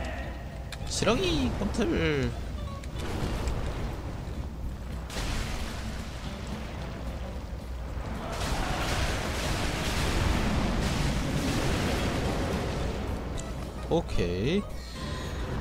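A huge creature roars.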